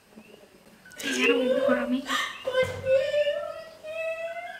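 A young woman laughs loudly in an echoing room.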